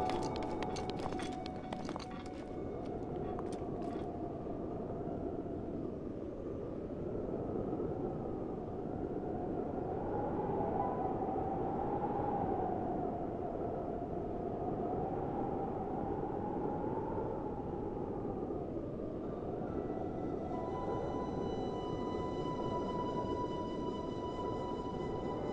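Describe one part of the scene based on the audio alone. Rain pours steadily outdoors in a gusting wind.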